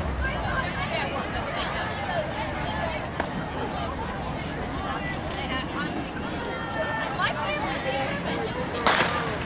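Many young people chatter and call out across an open field outdoors.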